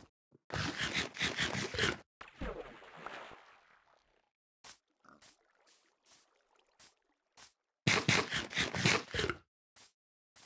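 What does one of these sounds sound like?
Crunchy eating and munching sounds come in quick bursts.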